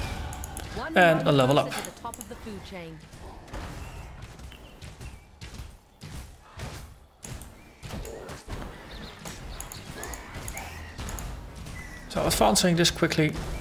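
Spells crackle and burst in quick bursts.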